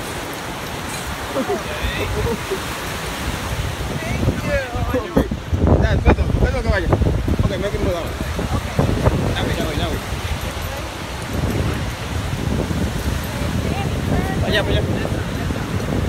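A woman talks casually close by.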